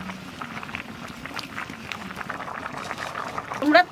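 A wok of curry simmers and bubbles over a wood fire.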